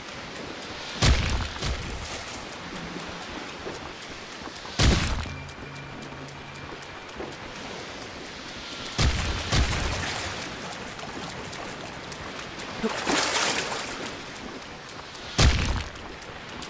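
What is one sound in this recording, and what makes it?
Sharp heavy blows strike now and then.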